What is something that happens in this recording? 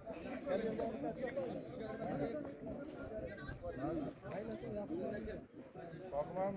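Men talk outdoors at a distance.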